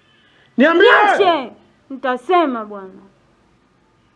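A young man speaks sharply and with emotion, close by.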